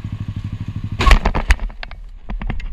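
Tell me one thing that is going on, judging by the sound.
A motorcycle crashes into a car with a loud bang.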